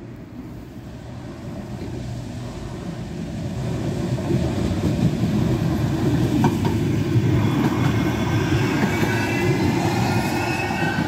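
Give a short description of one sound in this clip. A tram rumbles in, growing louder as it rolls past close by.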